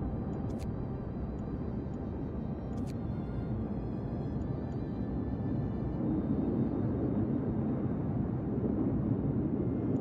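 A cold wind blows steadily and low.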